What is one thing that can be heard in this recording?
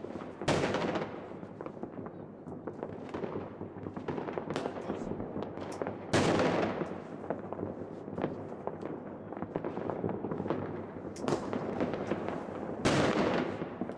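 Fireworks burst with loud booms.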